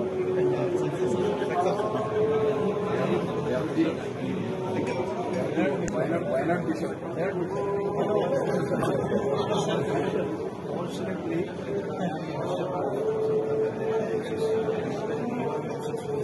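Many men talk at once in a crowded room with a steady murmur.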